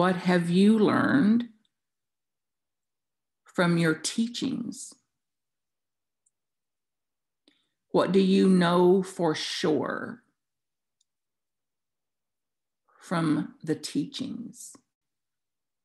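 An elderly woman speaks calmly in short bursts through an online call.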